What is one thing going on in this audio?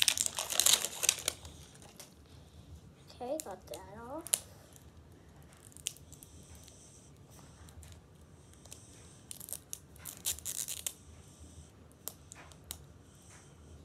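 Plastic rustles and crinkles as a young girl handles a toy egg.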